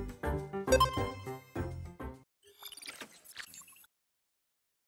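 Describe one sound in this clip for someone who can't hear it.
A short electronic musical jingle plays.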